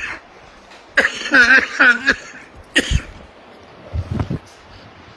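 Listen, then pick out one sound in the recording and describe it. A man coughs.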